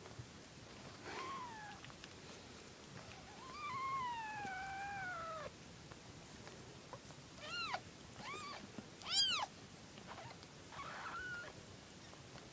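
Kittens mew in high, thin cries close by.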